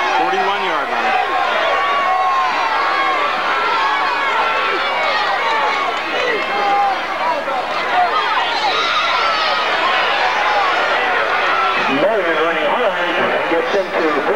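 A large crowd of spectators chatters and cheers outdoors.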